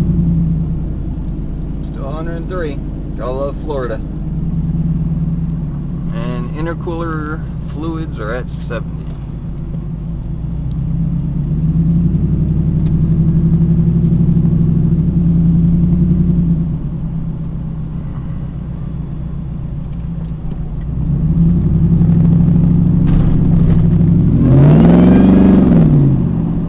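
A car engine hums and drones steadily from inside the car.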